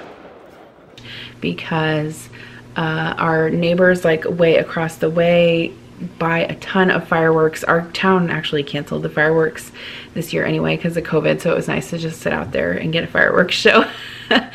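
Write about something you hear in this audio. A woman talks with animation, close to a microphone.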